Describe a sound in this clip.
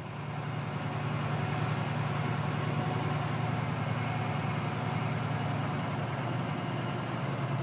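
Tyres roll over a rough concrete surface.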